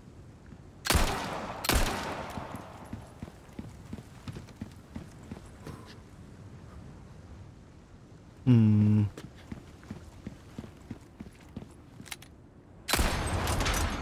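A gun fires a loud shot that echoes.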